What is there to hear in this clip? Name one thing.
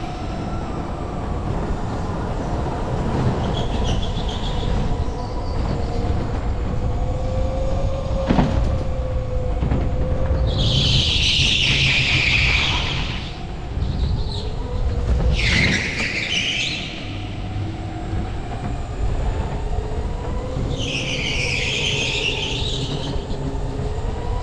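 A go-kart engine drones loudly and steadily, its pitch rising and falling as it speeds up and slows down.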